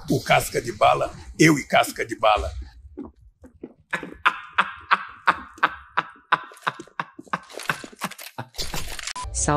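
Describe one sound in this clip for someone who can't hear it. A young man laughs loudly and heartily through a microphone.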